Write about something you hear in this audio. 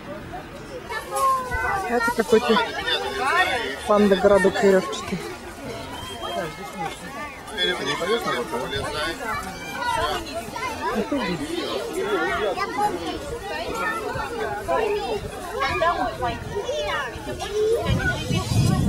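Children shout and chatter nearby outdoors.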